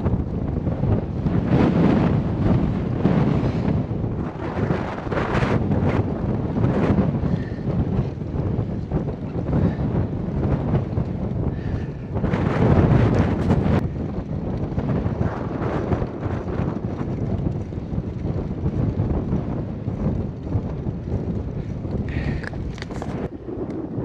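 Wind buffets loudly against a moving rider outdoors.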